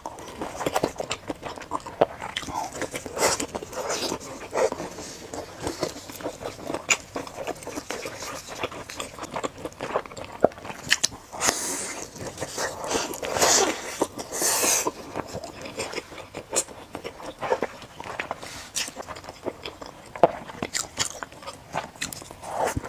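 A young woman chews food wetly and loudly, close to a microphone.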